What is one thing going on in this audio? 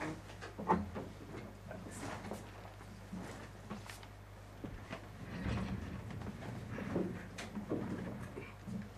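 A crowd of people murmurs quietly in a room.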